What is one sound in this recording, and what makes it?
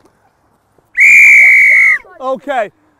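A referee's whistle blows one long blast.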